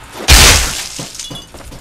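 A gunshot blasts and echoes.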